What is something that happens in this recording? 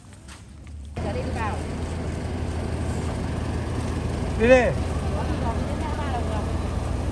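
A bus engine idles with a steady low rumble nearby.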